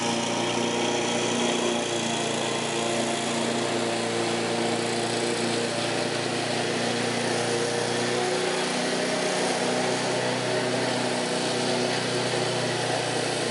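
A petrol lawn mower engine drones steadily outdoors.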